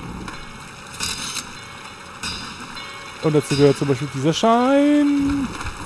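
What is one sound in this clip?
A skateboard grinds and scrapes along a metal rail.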